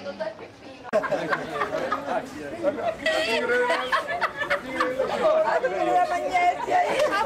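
A woman talks and laughs close by.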